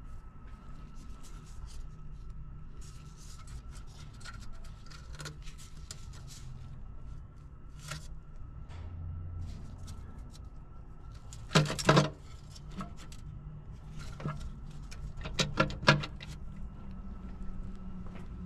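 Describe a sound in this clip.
Gloved fingers tap and click against metal engine parts.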